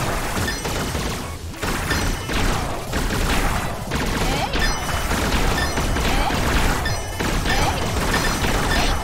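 Upbeat game music plays throughout.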